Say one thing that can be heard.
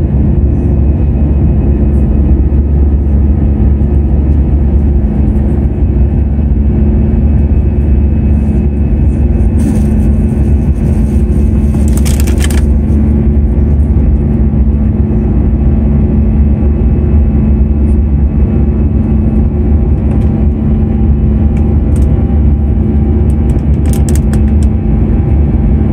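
A jet engine roars steadily and loudly, heard from inside.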